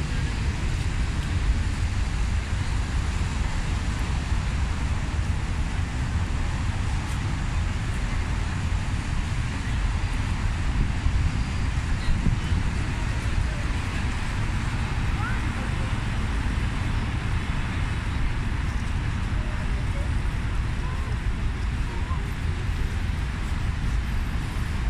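Wind rumbles outdoors against a microphone.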